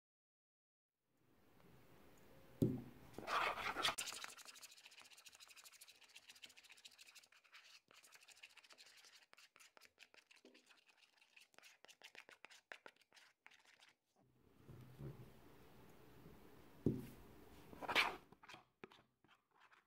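Liquid pours into a plastic bowl.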